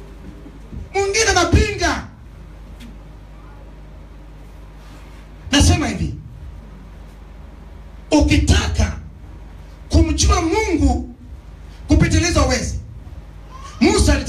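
A man preaches loudly in short bursts through a microphone and loudspeakers in an echoing hall.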